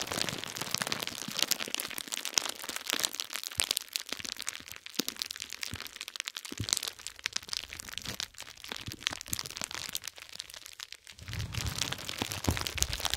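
Fingers press and rub bubble wrap, making close, crisp crinkling and popping sounds.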